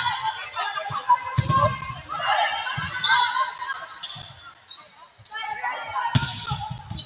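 Players shout and call out to each other across a large hall.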